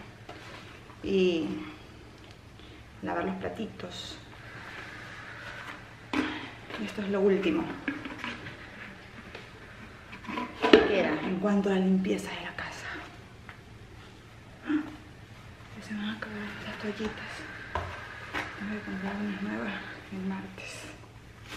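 A young woman talks casually and close by, with pauses.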